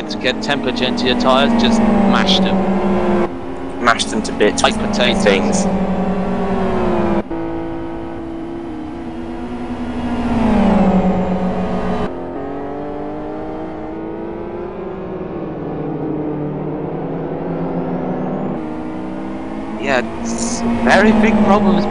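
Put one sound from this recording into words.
Racing car engines roar loudly, rising and falling in pitch as the cars shift gears.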